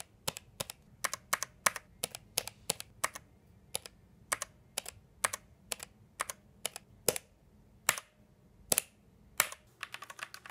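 Single keyboard keys click sharply, one at a time.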